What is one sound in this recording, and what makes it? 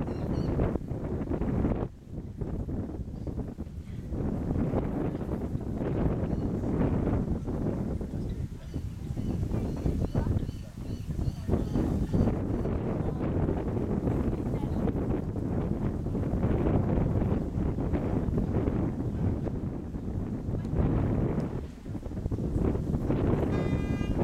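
Wind blows loudly outdoors.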